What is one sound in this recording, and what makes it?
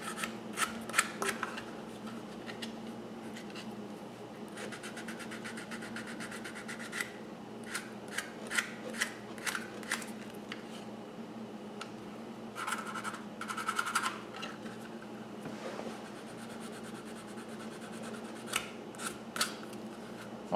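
Small tools tap and knock on a bench.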